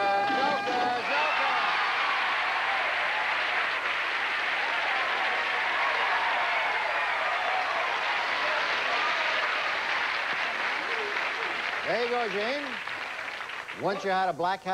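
A studio audience cheers and applauds loudly.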